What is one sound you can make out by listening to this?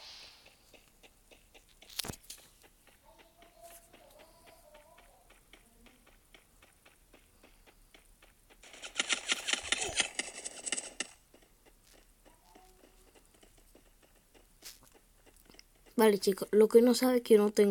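Footsteps run quickly and steadily over grass.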